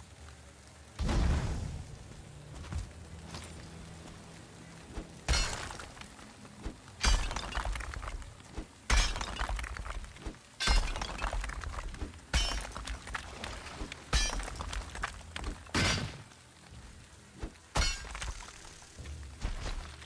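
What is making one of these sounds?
A pickaxe strikes rock again and again with sharp, ringing clangs.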